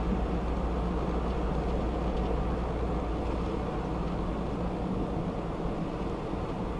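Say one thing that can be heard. Tyres roar steadily on the road.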